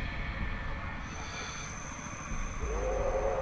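A high, thin warning tone sounds steadily.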